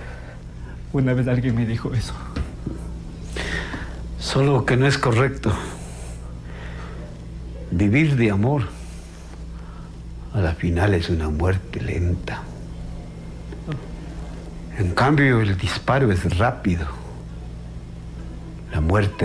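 An older man speaks with animation nearby.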